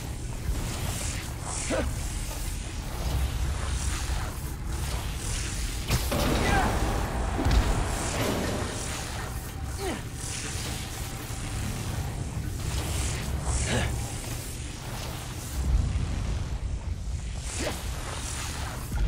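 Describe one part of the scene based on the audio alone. Quick whooshes sweep past again and again.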